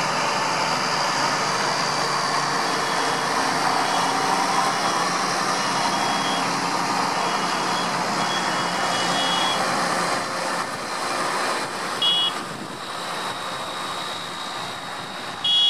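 Heavy tractor engines rumble as tractors drive past one after another.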